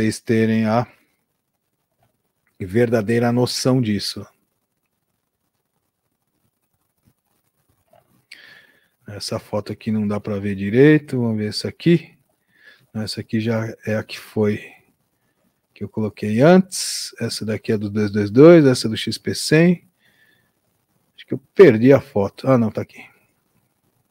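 A middle-aged man talks calmly and closely into a microphone, with pauses.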